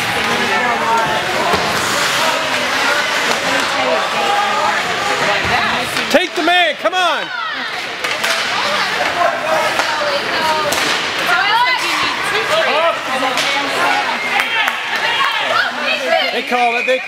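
A crowd of spectators chatters in an echoing ice arena.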